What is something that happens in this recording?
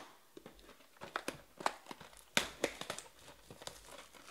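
Cardboard rustles as hands handle a box.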